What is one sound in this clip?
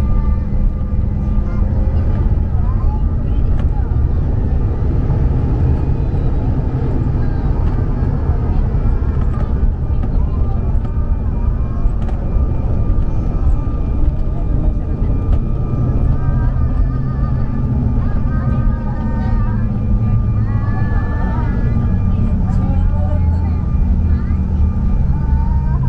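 Jet engines roar loudly and steadily inside an airliner cabin.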